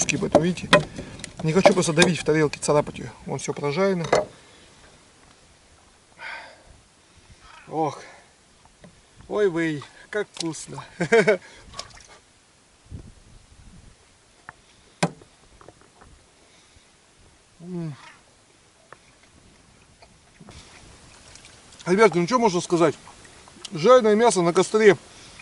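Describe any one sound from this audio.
A man talks calmly and close by, in pauses.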